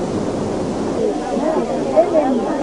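A crowd of women sing together outdoors.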